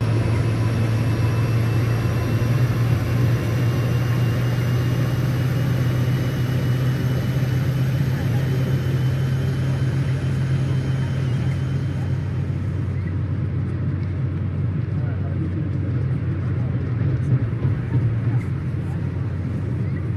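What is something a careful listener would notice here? A diesel engine rumbles steadily as a train pulls away.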